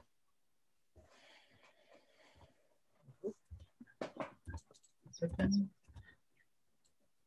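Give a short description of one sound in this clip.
A woman speaks quietly over an online call.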